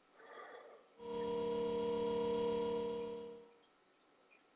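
A steady electronic tone hums from a video game.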